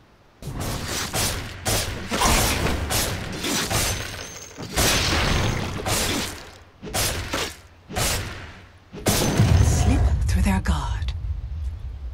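Magic spell effects whoosh and crackle in bursts.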